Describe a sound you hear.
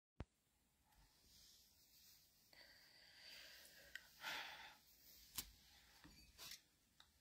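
A middle-aged woman speaks quietly close to a phone microphone.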